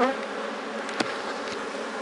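A metal tool knocks against a wooden hive box.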